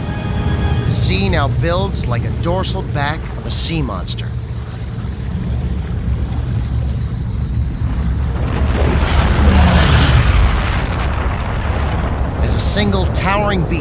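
Waves wash and surge at sea.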